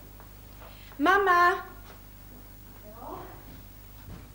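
A young woman sings out with a high, clear voice.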